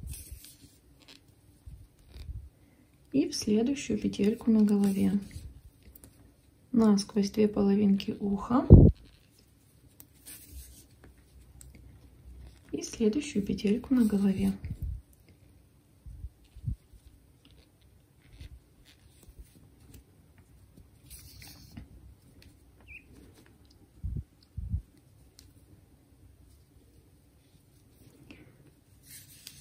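Yarn rustles softly as a needle is pulled through crocheted stitches.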